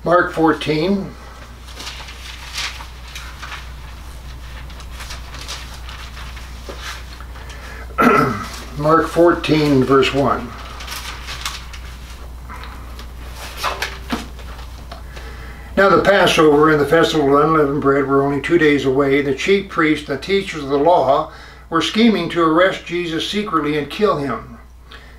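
An elderly man reads aloud calmly, with pauses, close by.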